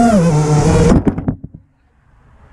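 A drone lands with a thump.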